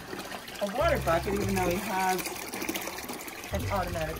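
Water pours from a hose into a plastic bucket.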